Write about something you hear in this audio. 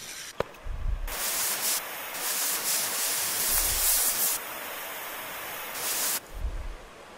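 A gas torch hisses with a steady roar.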